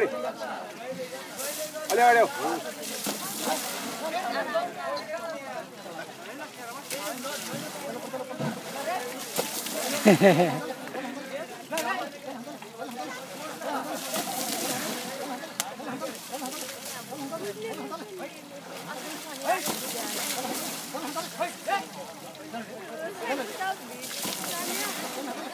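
Water splashes as elephants spray it from their trunks.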